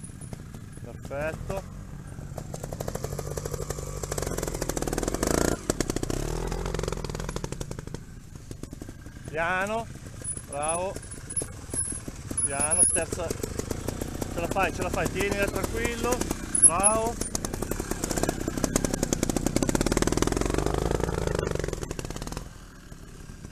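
A trials motorcycle engine revs in short bursts.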